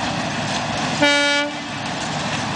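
A steam locomotive's whistle blows once, briefly.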